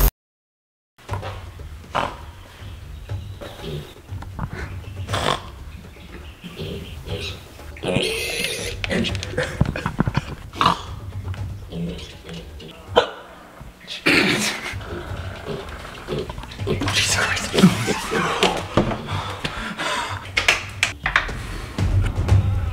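A young man talks quietly and playfully close by.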